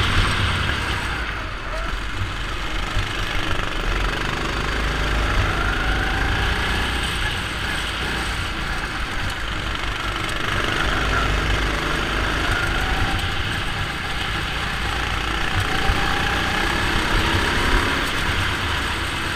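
A go-kart engine buzzes loudly close by, rising and falling in pitch.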